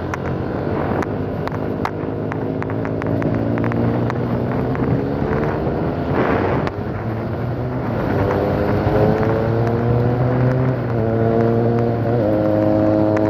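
A motorcycle engine rises in pitch as it accelerates along a road, dropping at each gear change.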